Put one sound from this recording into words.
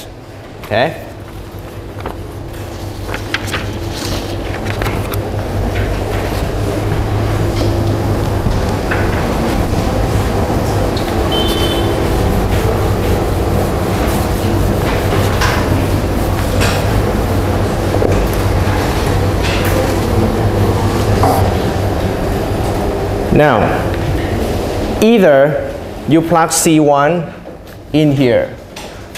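A young man speaks calmly through a microphone over a loudspeaker in an echoing room.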